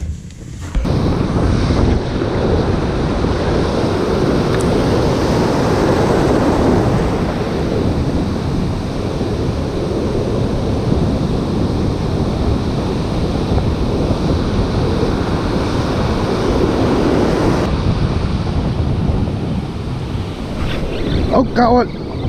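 Waves crash and surge close by.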